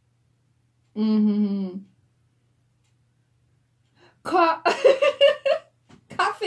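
A young woman speaks up close, with animation.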